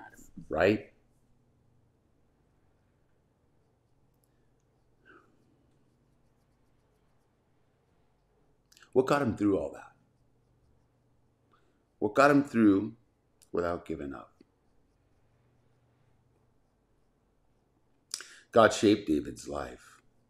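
A middle-aged man speaks calmly into a close microphone, in short phrases with long pauses.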